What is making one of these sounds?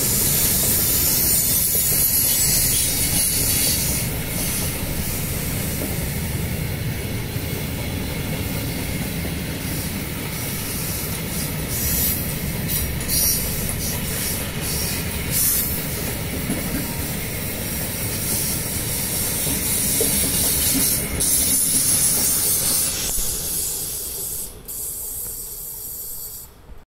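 Freight wagons rumble and clatter past close by on the rails.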